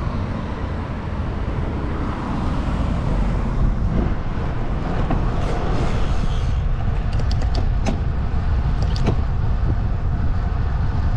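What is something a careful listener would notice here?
Wind rushes past steadily, outdoors.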